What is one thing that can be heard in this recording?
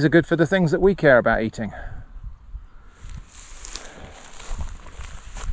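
Wind blows softly through tall grass outdoors.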